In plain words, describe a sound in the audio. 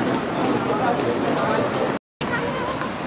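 A suitcase rolls on its wheels over pavement.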